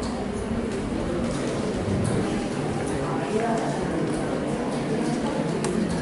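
A crowd of young people chatters indoors.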